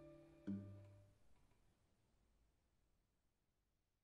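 A guitar and a violin play a final chord that rings and slowly fades.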